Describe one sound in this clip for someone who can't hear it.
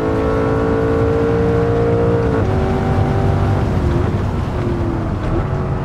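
A racing car engine roars at high revs.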